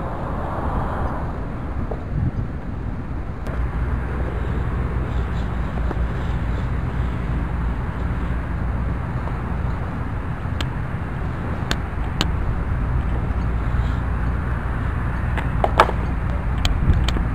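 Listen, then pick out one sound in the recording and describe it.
Wind blows across an open outdoor space.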